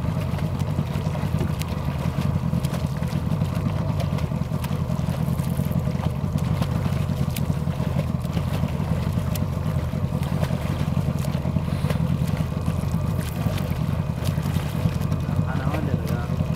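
A swimmer splashes steadily through calm water with rhythmic arm strokes.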